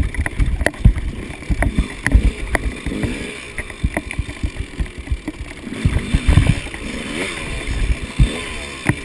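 A dirt bike's tyres and suspension thump and knock over rocks.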